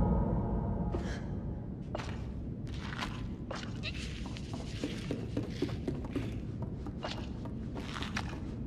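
Small footsteps patter across a hard floor.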